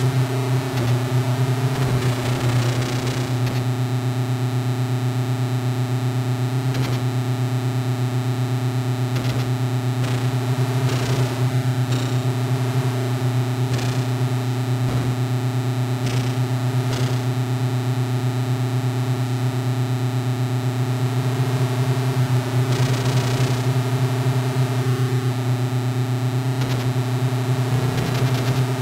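A game's buzzing electronic engine drones steadily throughout.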